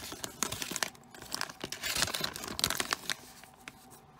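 A foil packet crinkles and rustles in a hand.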